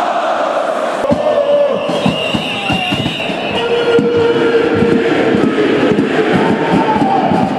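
A large crowd cheers and whistles across an open stadium.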